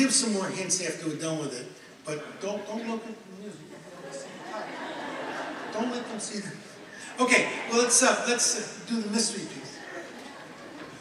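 An elderly man speaks with animation into a microphone, heard through a loudspeaker in a large hall.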